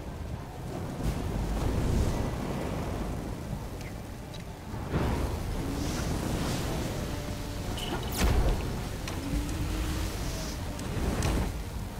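Small explosions burst with sharp bangs.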